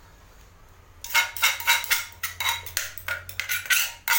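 Dry food rustles and patters as it is shaken out onto a plate.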